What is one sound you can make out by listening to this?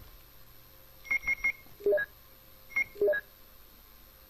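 Short electronic menu beeps sound in quick succession.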